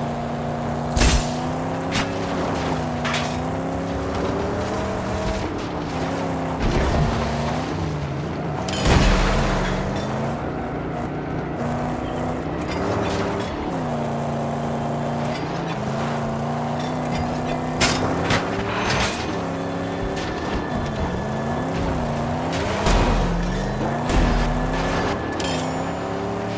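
Sharp cracks and thuds of impacts ring out now and then.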